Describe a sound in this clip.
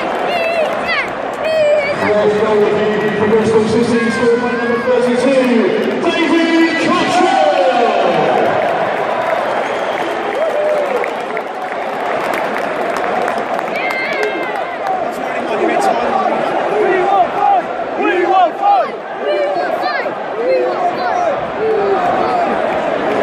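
A large crowd roars and cheers in the open air.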